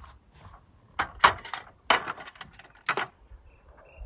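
Metal lanterns clink as they are set down on a wooden table.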